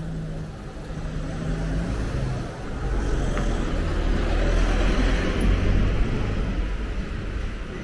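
A delivery truck engine rumbles as it drives slowly past close by.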